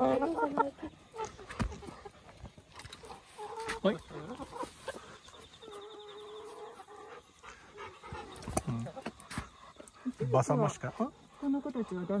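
Hens cluck and murmur close by.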